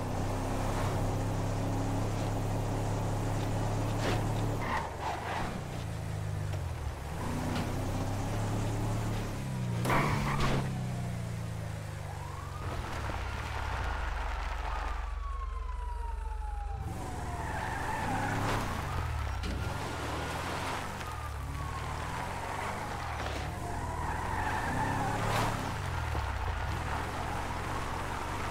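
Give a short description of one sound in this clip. A pickup truck's engine drones steadily and revs up and down as it drives.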